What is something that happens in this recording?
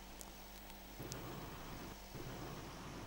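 A distant explosion booms and rumbles.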